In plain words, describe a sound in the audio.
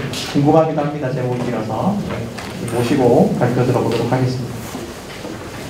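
A man speaks through a microphone over loudspeakers in a large echoing hall.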